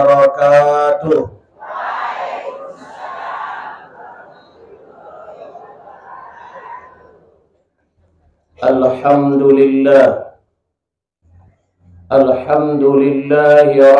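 A middle-aged man preaches through a microphone with strong, drawn-out emphasis, heard in an echoing space.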